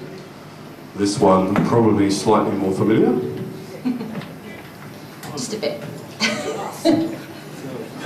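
A woman talks and laughs through a microphone.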